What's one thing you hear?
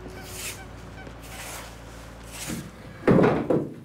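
A broom sweeps leaves on pavement with rhythmic swishes.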